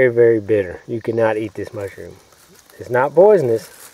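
A mushroom is pulled up from the ground with a soft snap.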